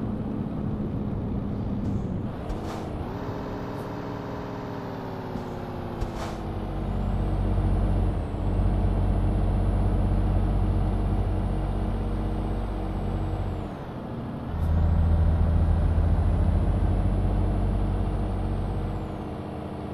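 A heavy truck engine drones steadily, dipping and rising as the gears change.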